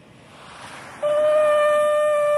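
A man blows a loud, steady note on a conch shell horn.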